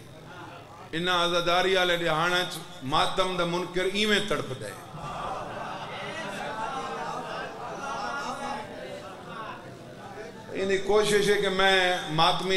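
A young man recites loudly in a drawn-out, chanting voice through a microphone.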